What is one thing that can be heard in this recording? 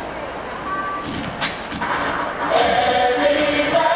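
Young women sing into microphones.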